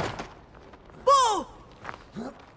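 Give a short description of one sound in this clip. A young boy shouts out in alarm.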